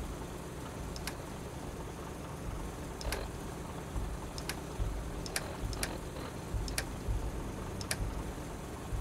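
Short sharp clicks sound as a device's menu is scrolled.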